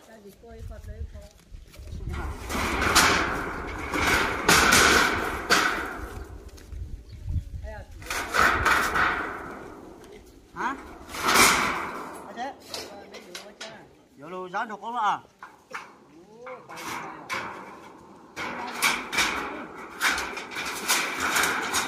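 Metal roofing sheets rattle and clatter as they are moved and stacked.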